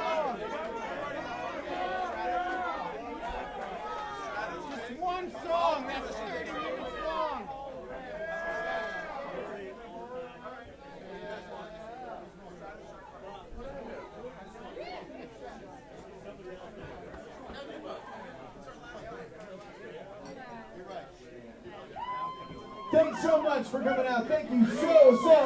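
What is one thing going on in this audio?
A crowd of adults talks and shouts loudly close by.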